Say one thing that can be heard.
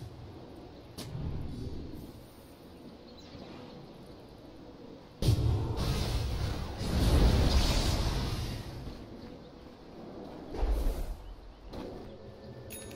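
Fiery spell effects burst and crackle.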